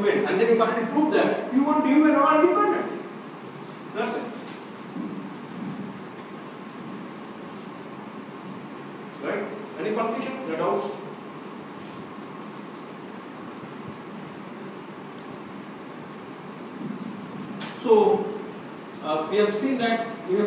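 A man lectures calmly in a room with a slight echo, speaking in short bursts with pauses.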